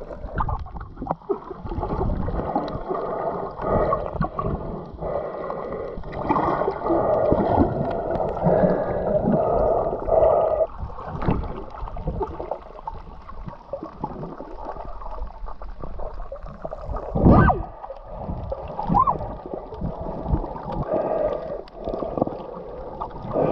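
Water rushes and bubbles in a muffled underwater hush.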